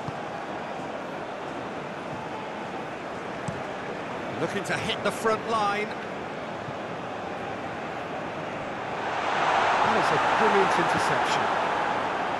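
A large stadium crowd murmurs steadily and then swells into a loud roar.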